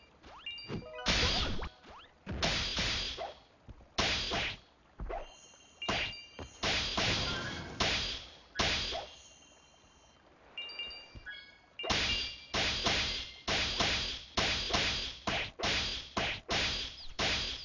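Sword slashes and magic blasts hit with sharp bursts again and again.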